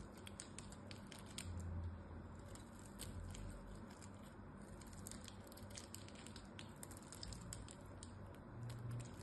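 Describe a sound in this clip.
A blade scrapes and cuts into a crumbly block with soft crunching.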